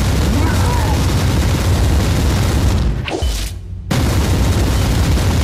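Heavy blades clash and strike armour in a fierce fight.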